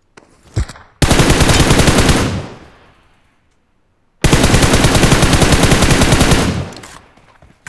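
A rifle fires in rapid bursts of shots.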